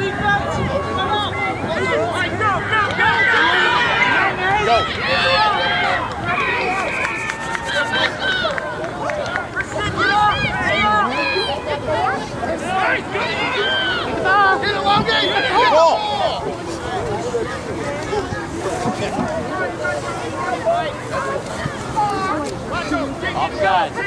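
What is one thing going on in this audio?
Many young people shout and call out to each other outdoors, heard from a distance.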